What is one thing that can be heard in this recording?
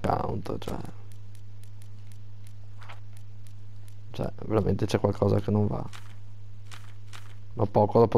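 Soft interface clicks tick as a menu selection moves.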